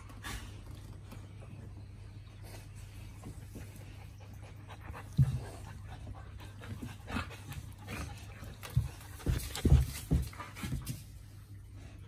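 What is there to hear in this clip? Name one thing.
Dogs scuffle and tumble together, with soft thumps and bumps.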